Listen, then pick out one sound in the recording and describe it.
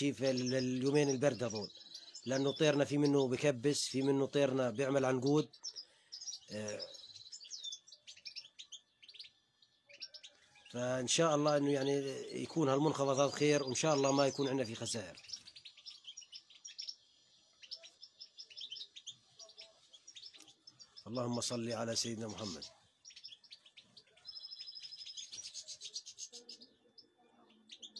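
Small birds chirp and twitter close by.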